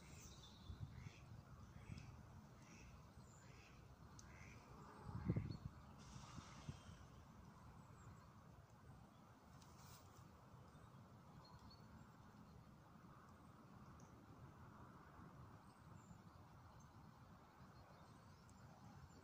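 Wind blows and rumbles against the microphone outdoors.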